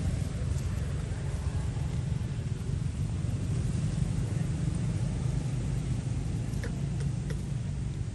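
A baby monkey rustles a leafy plant.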